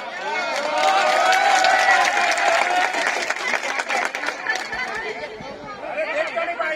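A crowd of men cheers and shouts loudly outdoors.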